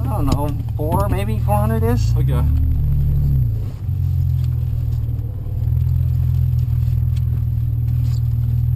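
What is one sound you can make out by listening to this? A car engine drones and rises and falls in pitch as the car drives.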